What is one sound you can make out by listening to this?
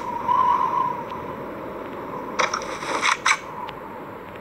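A weapon clicks as it is picked up.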